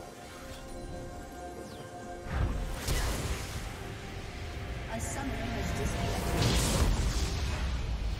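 Game spell effects whoosh and crash in a fast battle.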